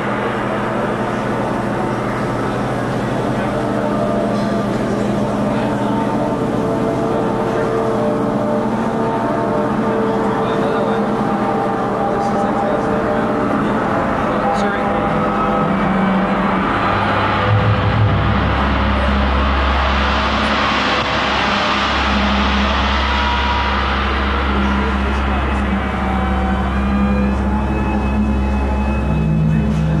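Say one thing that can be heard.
Loud electronic dance music plays through loudspeakers.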